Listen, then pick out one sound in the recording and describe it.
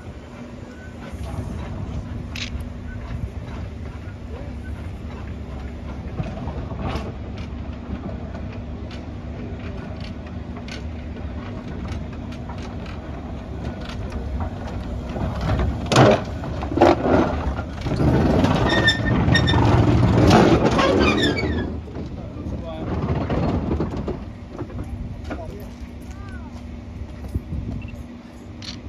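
A steam locomotive chuffs steadily as it rolls slowly along the track.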